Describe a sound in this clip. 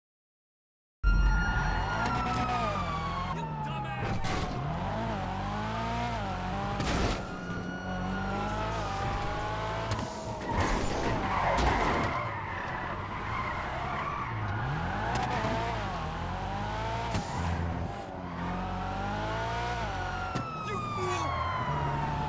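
A car engine revs high and whines as the car drifts.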